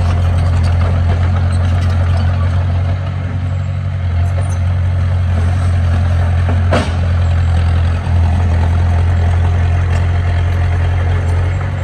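A small bulldozer's diesel engine rumbles steadily close by.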